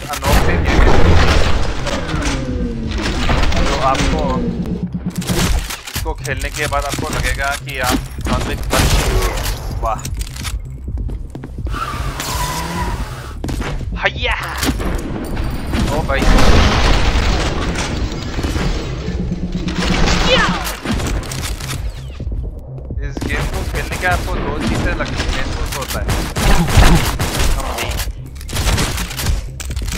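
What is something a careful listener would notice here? A shotgun fires loud, booming blasts again and again.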